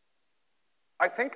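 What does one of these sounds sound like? A young man speaks briefly through a microphone in a large hall.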